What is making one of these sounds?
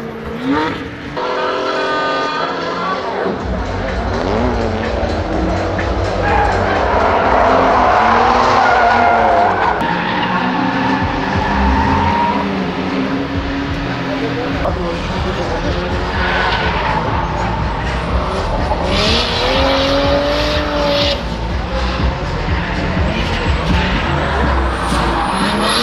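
Car engines rev hard and roar.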